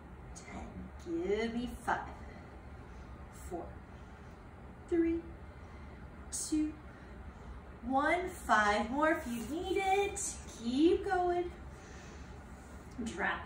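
An older woman speaks calmly and close by, in short bursts.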